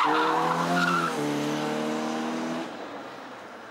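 A rally car engine roars loudly as the car speeds past.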